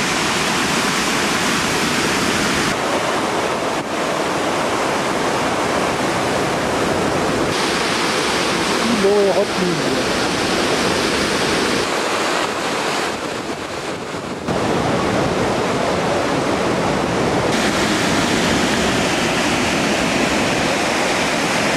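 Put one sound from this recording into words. Water rushes and roars over a weir.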